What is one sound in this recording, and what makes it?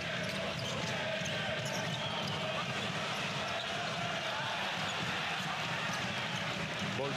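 A large crowd cheers and chants steadily in an echoing arena.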